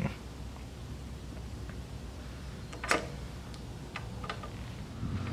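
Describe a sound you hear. Metal parts click together.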